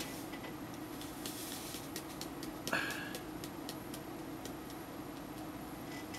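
Powder pours from a can.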